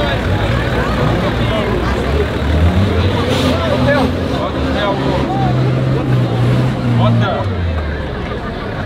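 An engine rumbles and strains at low speed.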